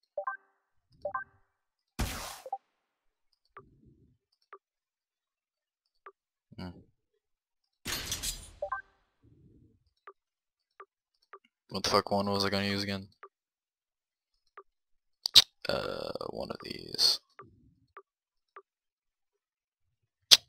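Soft game menu clicks and blips sound as items are selected.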